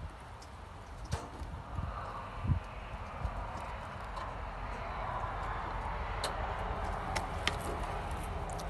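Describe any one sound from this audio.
Small claws patter and scratch on wooden boards close by.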